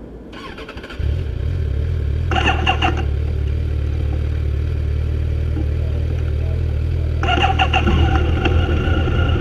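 A motorcycle engine starts and runs with a low, steady rumble close by.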